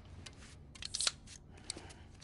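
A can clicks open.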